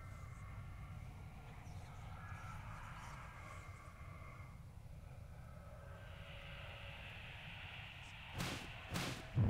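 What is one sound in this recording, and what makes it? Footsteps scrape on stone.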